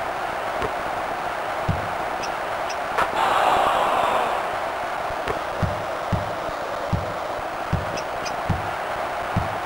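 A crowd roars steadily in a large arena, swelling briefly.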